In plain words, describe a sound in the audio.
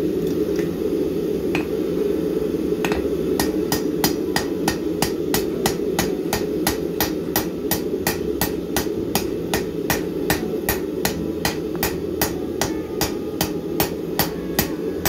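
A hammer rings against hot metal on an anvil in quick, steady blows.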